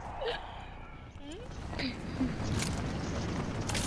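A game character lands on the ground with a thud.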